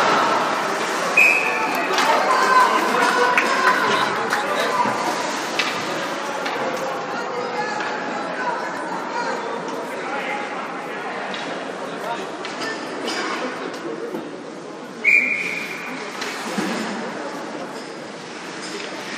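Skates scrape and glide across ice in a large echoing rink.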